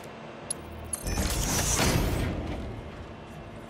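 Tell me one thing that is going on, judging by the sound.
Sparks crackle and fizz in a burst.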